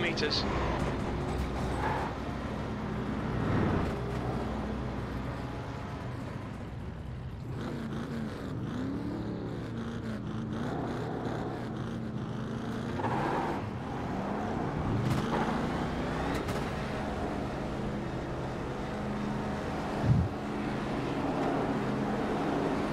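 A race car engine idles and revs.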